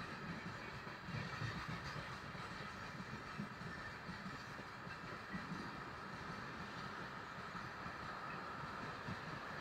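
A freight train rumbles and clatters past on the tracks nearby.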